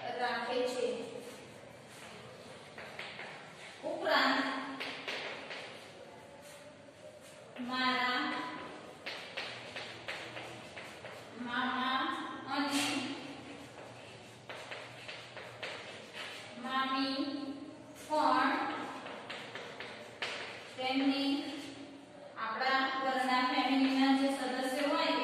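A woman speaks in a slow, clear voice, as if dictating.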